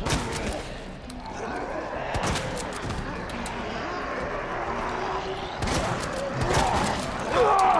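Gunshots bang out in quick bursts.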